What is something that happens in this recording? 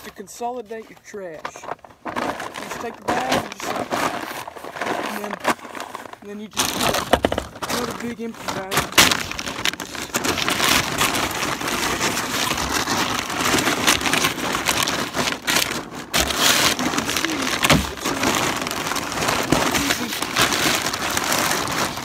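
Paper feed sacks rustle and crinkle as they are handled.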